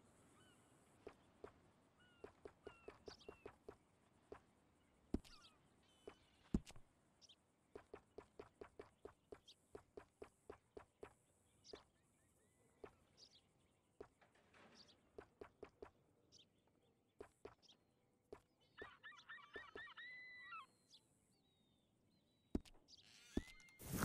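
Soft menu clicks tick in quick runs.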